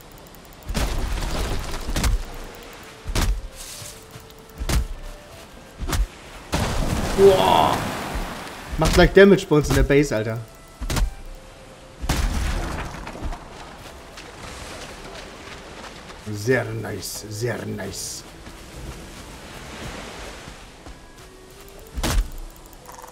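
An axe chops into wood with sharp thuds.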